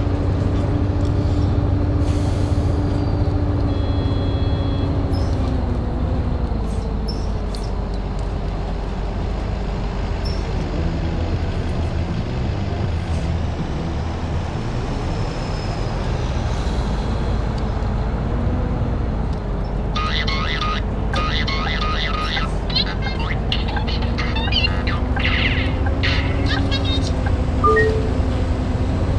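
A bus engine hums steadily, its pitch rising and falling as the bus slows and speeds up.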